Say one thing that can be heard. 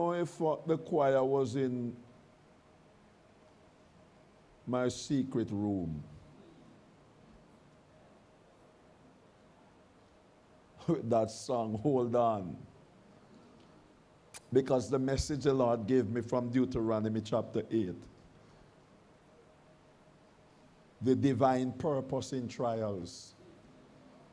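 A middle-aged man speaks slowly and deliberately into a microphone, in short phrases with pauses.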